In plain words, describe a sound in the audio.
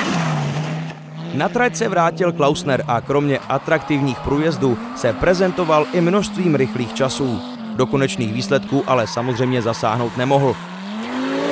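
A rally car exhaust pops and crackles rapidly.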